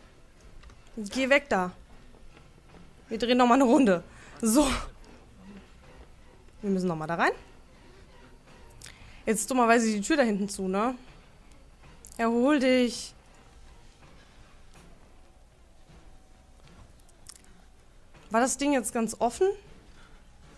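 A young woman speaks close to a microphone in short, animated bursts.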